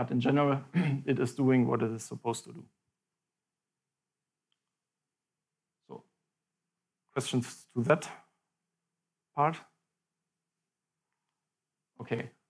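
A young man speaks calmly, with long pauses.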